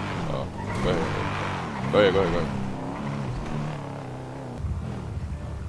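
A car engine hums as a car drives along a street.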